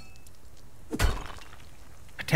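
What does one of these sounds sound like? A pickaxe strikes a rock with a sharp crack.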